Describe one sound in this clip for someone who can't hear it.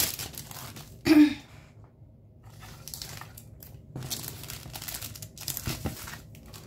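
A plastic sleeve crinkles as paper is slid and pressed against a table.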